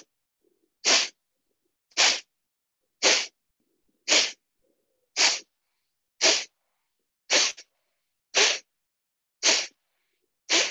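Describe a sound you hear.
A man breathes out forcefully through his nose in a steady rhythm, about once a second, over an online call.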